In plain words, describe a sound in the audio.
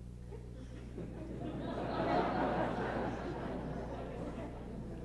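A large crowd murmurs softly.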